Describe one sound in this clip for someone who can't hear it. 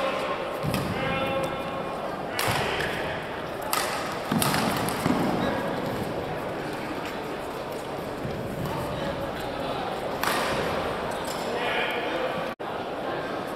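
Players' shoes squeak on the court floor.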